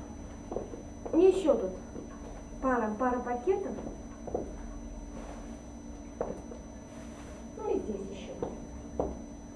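A young woman talks briefly and playfully nearby.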